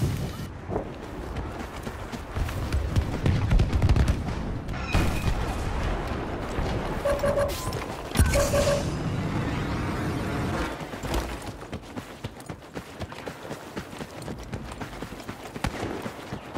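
Footsteps crunch on dry sand and gravel.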